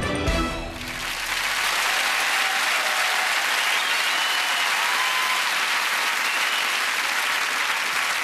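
A large studio audience applauds.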